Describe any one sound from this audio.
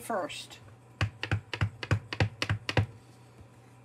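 A stamp block taps repeatedly on an ink pad.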